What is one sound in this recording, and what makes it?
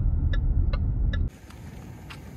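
A car drives along a road with a low engine rumble.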